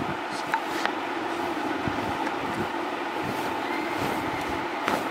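Cloth rustles softly as it is handled.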